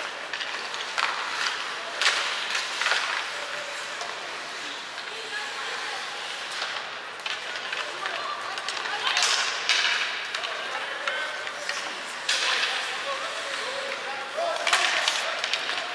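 Hockey sticks clack against a puck and each other in a large echoing arena.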